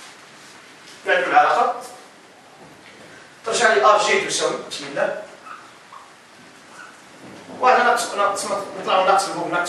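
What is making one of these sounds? A man speaks, lecturing calmly.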